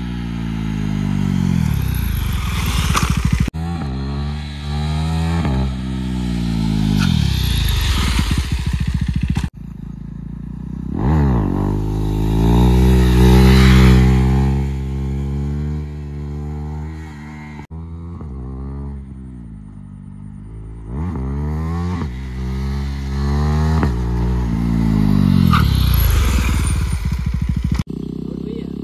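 A motorcycle engine revs loudly and roars past at speed.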